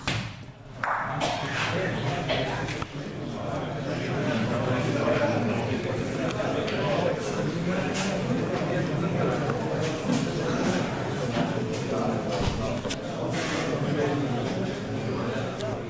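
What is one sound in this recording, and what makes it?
A crowd of spectators murmurs and chatters in an echoing hall.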